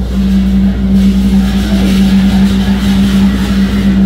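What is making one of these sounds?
Hand cymbals crash loudly and ring.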